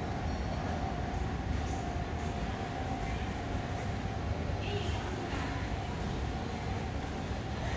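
Distant voices murmur indistinctly in a large echoing hall.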